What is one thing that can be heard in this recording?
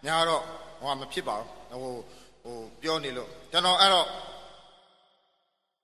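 A man announces loudly into a microphone, with a heavy echo.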